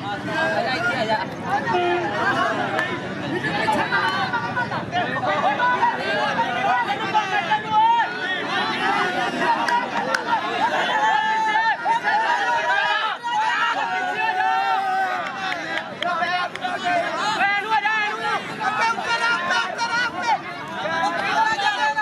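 A crowd of men shouts and chatters outdoors.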